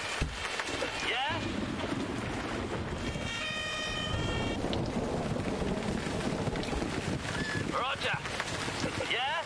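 A fire engine siren wails in short rising sweeps.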